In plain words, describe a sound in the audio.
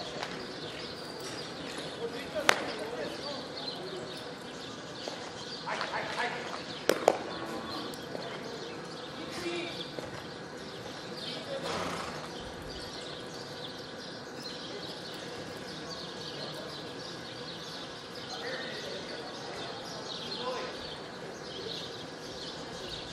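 Hooves thud on soft dirt as a horse darts side to side.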